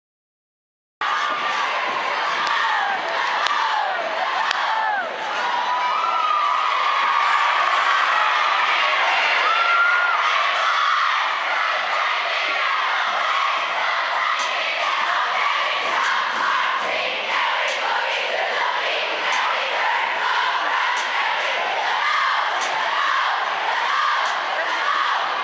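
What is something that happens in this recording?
A crowd of teenage girls screams and cheers in a large echoing hall.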